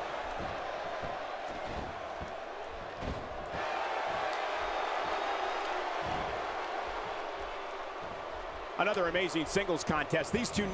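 A large crowd cheers and roars steadily in an echoing arena.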